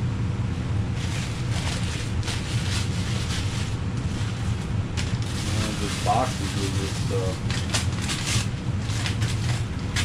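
Plastic wrapping rustles and crinkles in hands.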